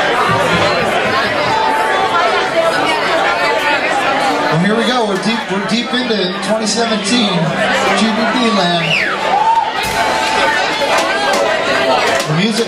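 A crowd of people chatter and cheer loudly.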